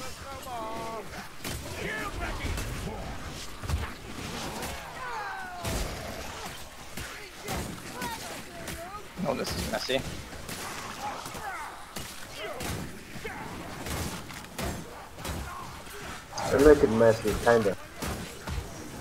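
Blades slash and thud into bodies in quick, repeated blows.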